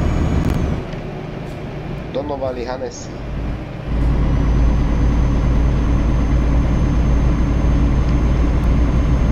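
A truck engine rumbles steadily inside the cab.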